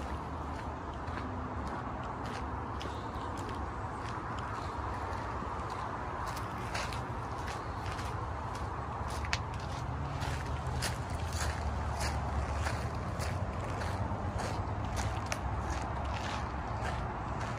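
Footsteps crunch on dry dirt and leaves.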